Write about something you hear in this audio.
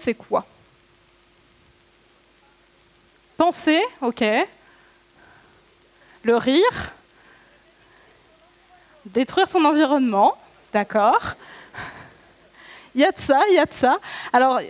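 A young woman speaks with animation into a microphone.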